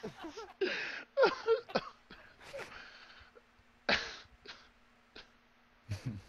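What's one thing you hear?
A man laughs heartily into a headset microphone.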